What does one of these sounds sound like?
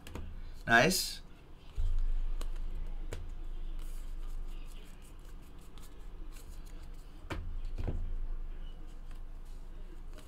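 Trading cards shuffle and flick in a man's hands.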